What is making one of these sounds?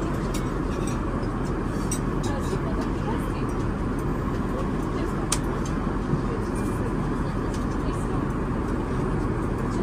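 A steady low drone of an airliner's engines fills the cabin.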